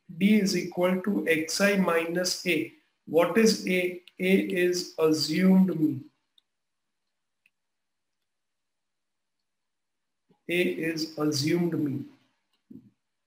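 A middle-aged man speaks calmly and explains into a close microphone.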